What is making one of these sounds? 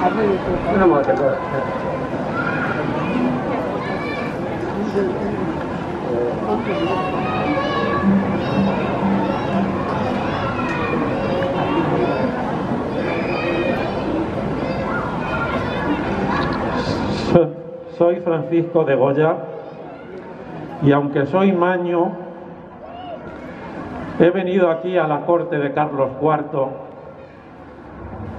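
A man speaks through a loudspeaker outdoors, reading out in pauses.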